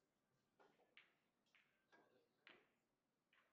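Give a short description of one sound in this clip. Pool balls clack against each other.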